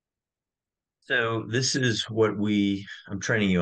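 A middle-aged man speaks calmly through an online call.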